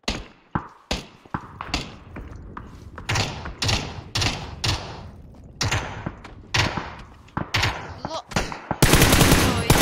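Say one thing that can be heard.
Rapid footsteps thud across a hard floor.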